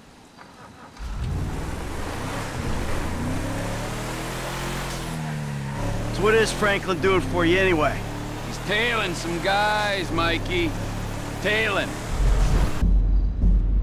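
A truck engine rumbles and revs as it drives off.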